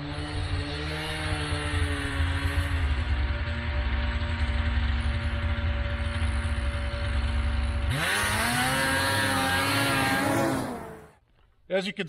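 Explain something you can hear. A snowmobile engine drones in the distance and draws nearer, revving up.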